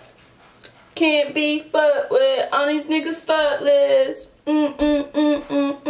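A young woman sings loudly and close by.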